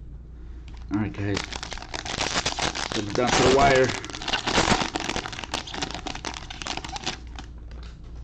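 A plastic wrapper crinkles and rustles as hands tear it open.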